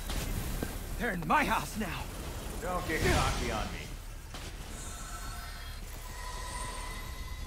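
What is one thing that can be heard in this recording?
Crackling energy bolts zap rapidly.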